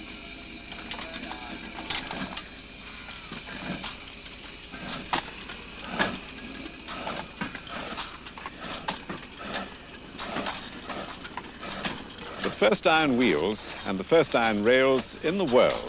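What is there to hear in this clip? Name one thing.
A steam locomotive's wheels roll and clatter over the rails.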